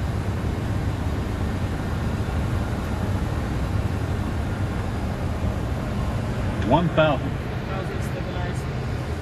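Aircraft engines and rushing air give a steady, loud roar inside the cockpit.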